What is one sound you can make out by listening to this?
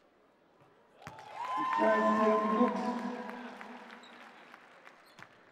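A crowd cheers in an indoor arena.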